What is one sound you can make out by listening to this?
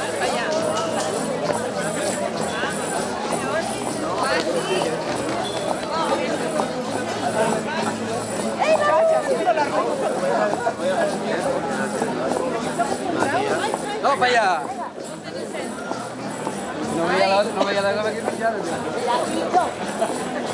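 A crowd of men and women talk and call out loudly all around.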